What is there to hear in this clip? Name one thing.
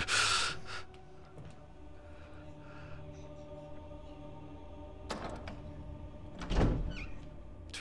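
A heavy door creaks slowly open.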